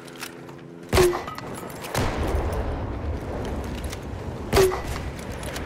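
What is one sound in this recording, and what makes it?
A rifle fires single loud shots.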